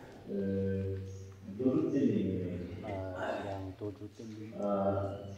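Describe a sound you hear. A man speaks calmly and slowly into a microphone.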